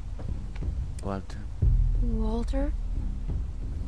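A young girl asks a question softly.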